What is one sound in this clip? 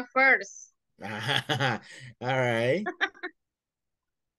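A young man laughs and talks over an online call.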